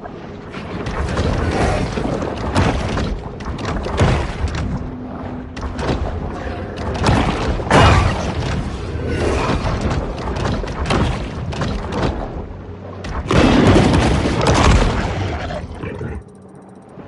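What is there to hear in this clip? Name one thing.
Water churns and splashes in heavy bursts as a large fish thrashes and bites.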